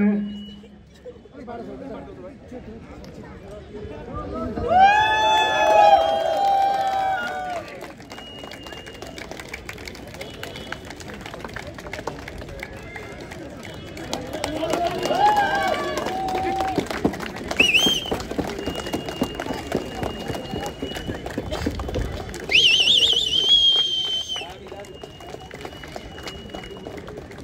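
A small crowd claps outdoors.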